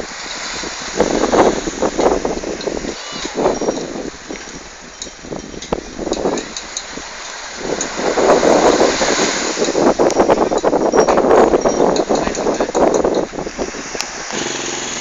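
Wind buffets the microphone in gusts outdoors.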